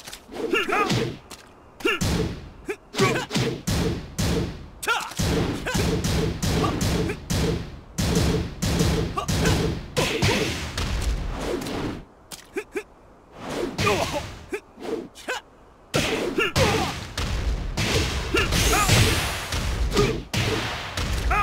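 Punches and kicks land with sharp, heavy thuds in quick bursts.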